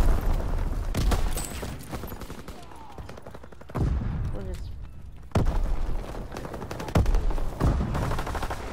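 A rifle fires with sharp loud cracks.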